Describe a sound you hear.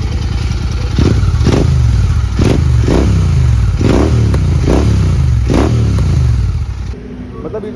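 A motorcycle engine revs up in short, repeated bursts.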